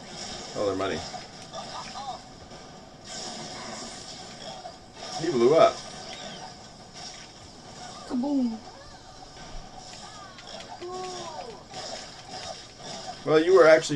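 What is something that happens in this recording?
Cartoon blasts and zaps of video game combat ring out.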